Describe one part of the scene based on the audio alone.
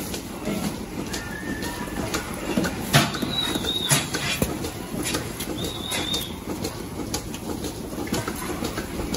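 Milking machines hiss and pulse steadily.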